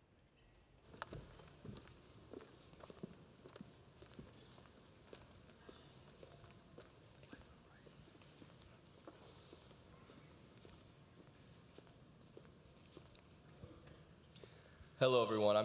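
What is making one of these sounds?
Footsteps tap across a wooden stage.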